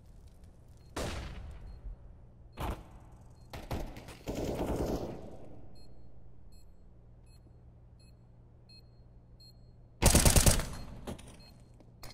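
A rifle fires loud short bursts of gunshots.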